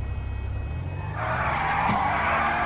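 A car engine revs up sharply.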